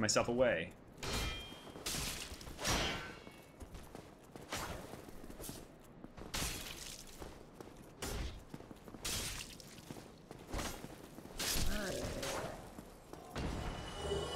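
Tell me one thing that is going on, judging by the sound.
Metal weapons clang and thud in a fight.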